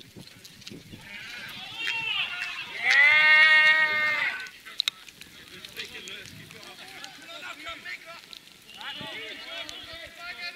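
Men shout loudly across an open field.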